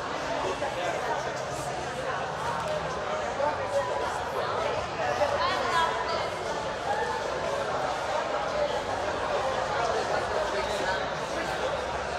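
A man talks calmly at a distance in a large echoing hall.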